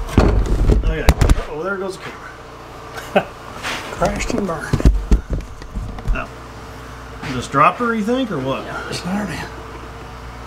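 Two men talk casually nearby.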